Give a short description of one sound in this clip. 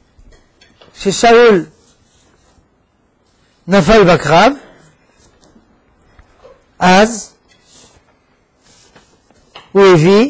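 An elderly man reads aloud slowly through a microphone.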